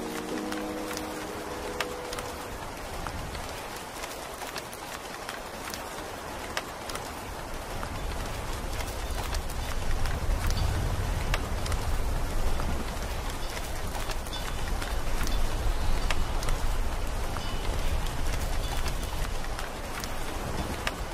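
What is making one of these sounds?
Rain patters steadily against a window.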